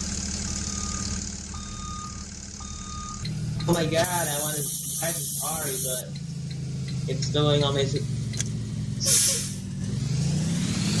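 A bus engine idles steadily.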